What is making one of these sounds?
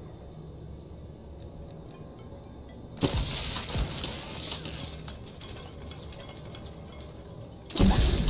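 Game menu sounds chime as items are selected.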